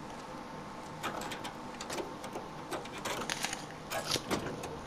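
Hands rummage and rattle through a car's interior.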